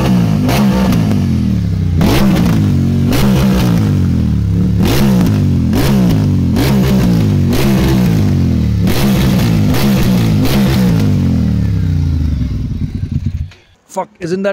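A motorcycle exhaust pops loudly.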